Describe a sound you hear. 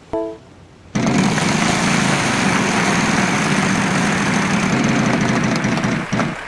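People clap and cheer.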